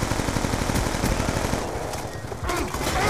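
A gun fires rapid automatic bursts.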